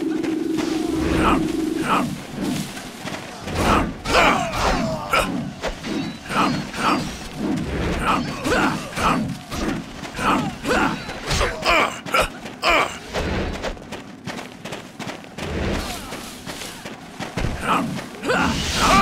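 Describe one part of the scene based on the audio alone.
Swords clash and slash again and again in a fierce battle.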